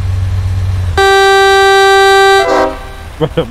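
A truck horn blares loudly.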